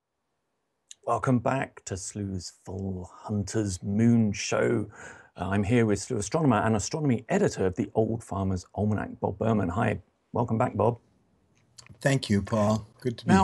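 A man talks calmly through an online call microphone.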